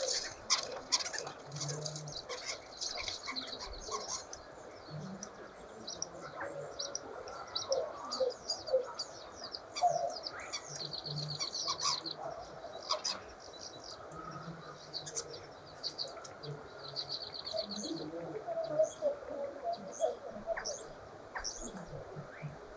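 A small bird chirps and twitters close by.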